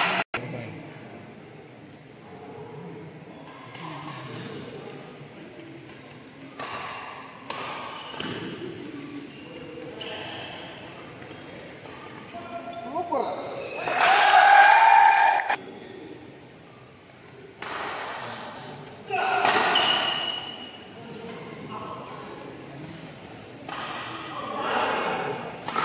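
Players' shoes squeak on the court floor.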